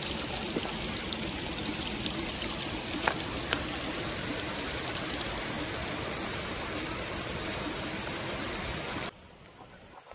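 Water rushes steadily along a narrow channel.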